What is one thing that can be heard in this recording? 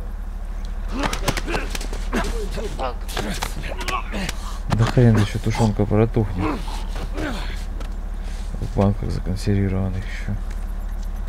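Heavy blows thud during a scuffle.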